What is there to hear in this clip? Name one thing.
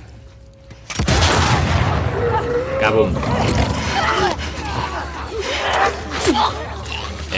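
A man grunts and struggles in a close scuffle.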